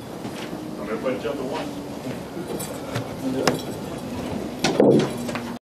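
A man speaks through a microphone in an echoing room.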